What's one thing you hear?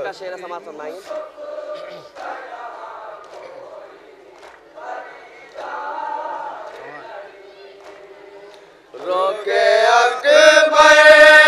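A man chants a lament through a loudspeaker, echoing outdoors.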